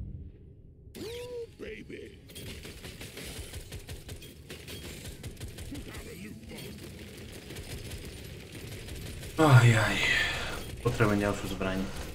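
A man talks animatedly close to a microphone.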